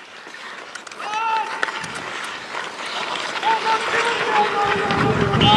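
Players shout to each other across an outdoor rink.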